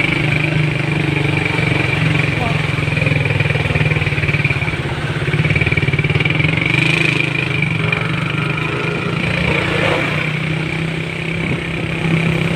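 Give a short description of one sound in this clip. Heavy truck engines hum nearby.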